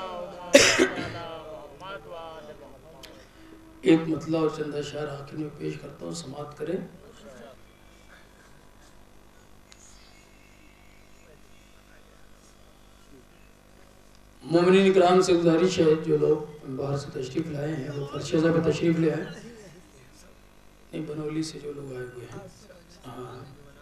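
A young man recites in a chanting voice through a microphone, in bursts with pauses.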